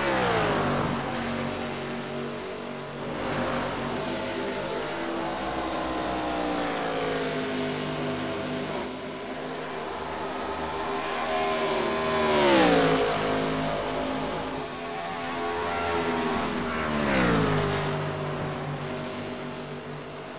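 Race car engines roar at high speed throughout.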